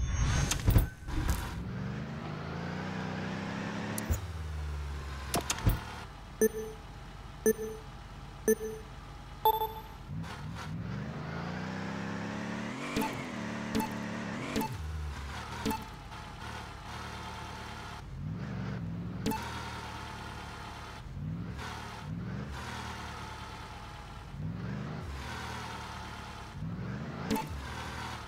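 A truck engine revs and drones, rising and falling in pitch.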